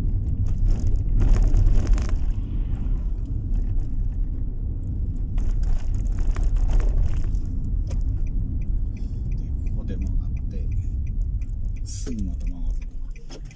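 Tyres roar steadily on the road as a car drives along.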